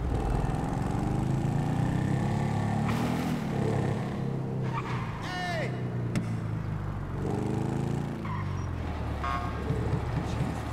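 A motorcycle engine revs up and down as it rides.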